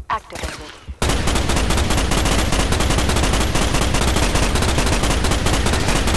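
A gun fires in rapid, loud bursts.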